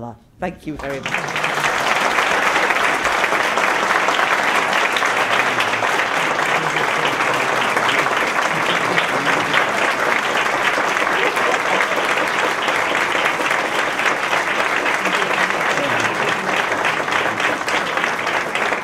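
An audience applauds loudly and steadily in a room.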